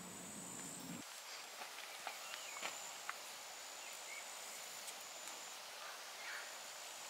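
A tarp rustles and flaps as it is shaken out.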